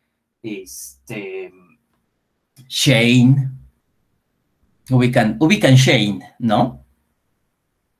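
A man speaks with animation over an online call, in short bursts.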